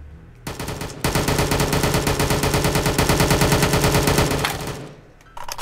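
An automatic rifle fires a rapid burst of shots.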